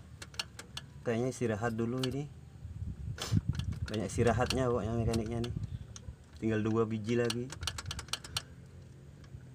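Metal parts click and tap on a diesel injection pump worked by hand.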